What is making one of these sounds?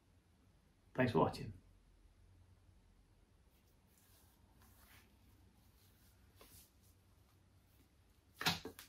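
A man speaks briefly and quietly, close by.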